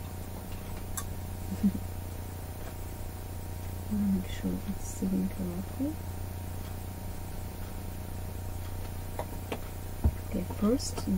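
Small plastic parts of a sewing machine click softly as they are handled.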